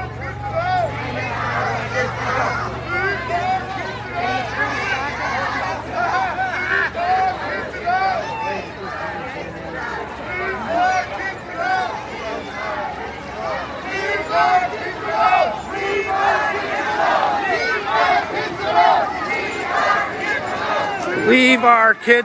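A crowd of marchers chants loudly together outdoors.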